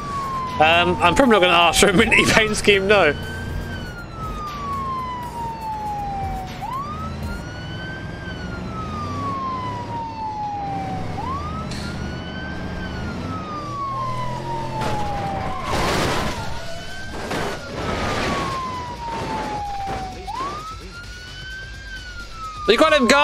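A siren wails, rising and falling in long sweeps.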